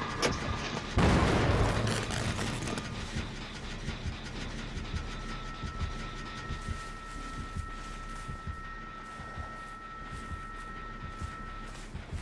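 Footsteps rustle softly through tall grass.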